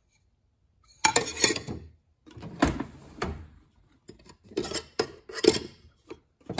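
Metal rings clink and clatter against each other.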